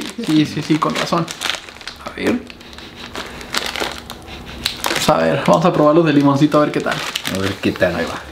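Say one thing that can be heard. A plastic snack wrapper crinkles.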